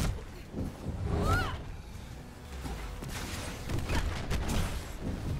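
Energy blasts whoosh and crack in a fight.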